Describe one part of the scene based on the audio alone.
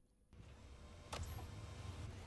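A plastic button clicks.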